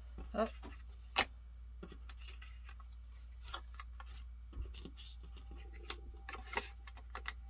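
Playing cards shuffle and slap softly as they are handled.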